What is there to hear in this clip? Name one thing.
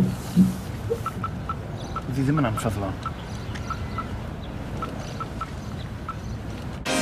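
A mobile phone's keys beep as a man types a text.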